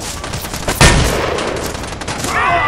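A rifle shot cracks loudly and echoes.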